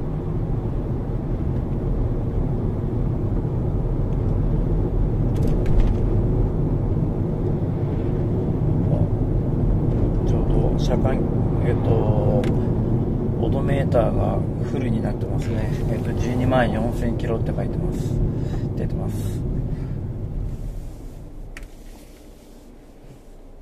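A car engine hums and tyres roll on the road, heard from inside the car, then quieten as the car slows.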